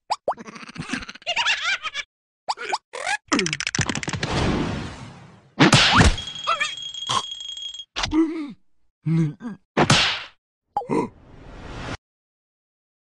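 A cartoon character babbles in a high, squeaky, comic voice.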